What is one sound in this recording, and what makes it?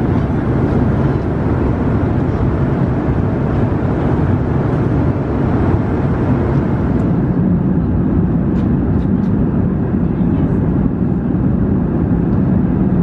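A jet airliner's engines roar with a steady, low rushing drone.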